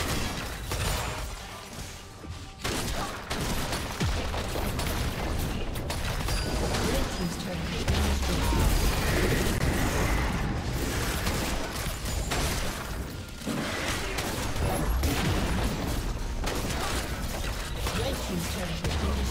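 Video game combat effects whoosh, zap and clash without pause.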